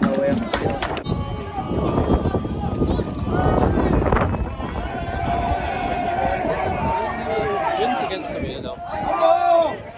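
A crowd of spectators murmurs and calls out outdoors.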